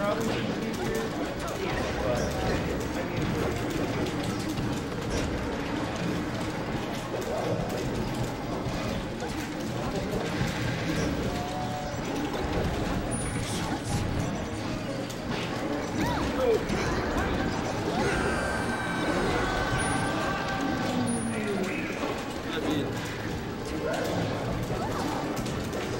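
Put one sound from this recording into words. Electronic fight game sound effects burst and clash.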